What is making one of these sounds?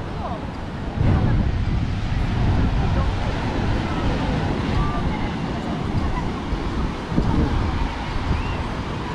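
Wind rumbles across the beach.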